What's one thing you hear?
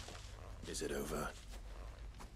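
A young man asks a short question calmly.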